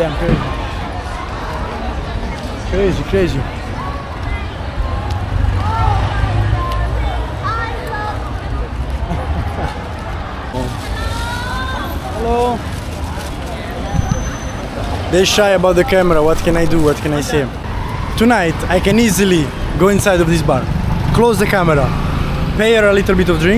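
A busy street hums with a low crowd murmur and traffic.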